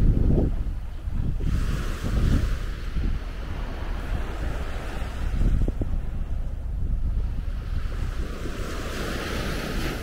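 Wind rumbles and gusts outdoors.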